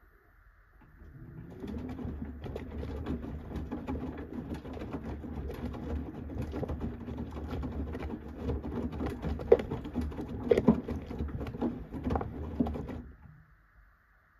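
A washing machine drum tumbles wet laundry with a sloshing rumble.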